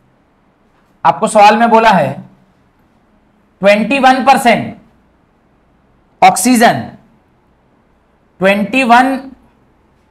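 A man speaks in short bursts, close to a microphone, explaining calmly.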